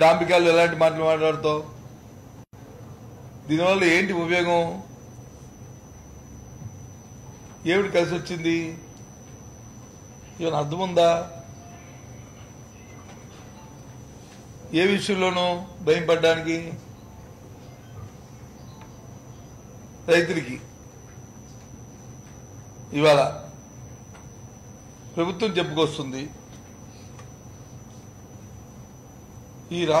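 A middle-aged man speaks into a microphone in short, firm bursts with pauses between.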